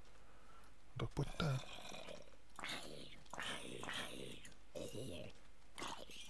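A creature groans low and hoarsely.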